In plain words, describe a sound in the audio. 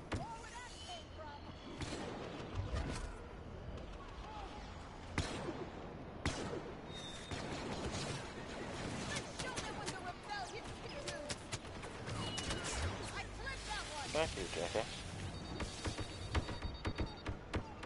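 Blaster guns fire in rapid bursts of sharp zaps.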